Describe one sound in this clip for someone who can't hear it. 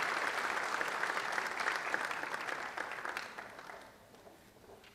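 An audience applauds in a large hall, then the applause fades away.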